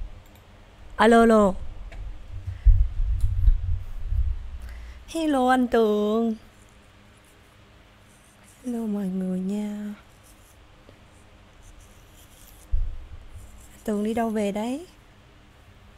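A young woman sings short held notes close into a microphone.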